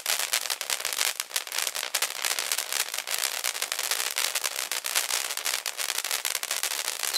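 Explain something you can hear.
A firework fountain hisses and sprays sparks steadily.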